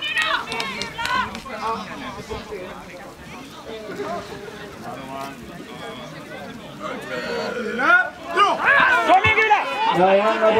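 A crowd of spectators shouts and cheers outdoors, growing louder toward the end.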